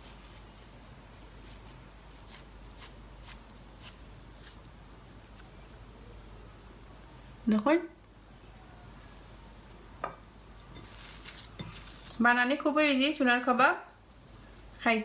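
Hands squish and pat soft dough.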